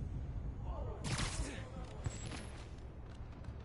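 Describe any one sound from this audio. A sharp whoosh rushes past.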